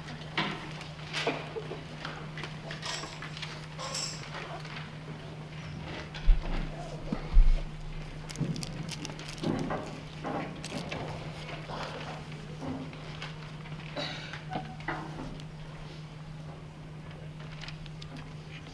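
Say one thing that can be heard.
An audience rustles and murmurs quietly in a large hall.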